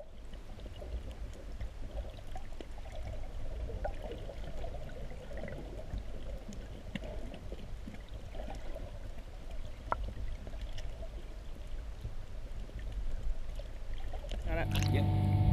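Water rushes and gurgles, heard from underwater.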